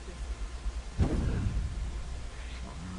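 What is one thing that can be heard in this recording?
A sudden whoosh rushes past.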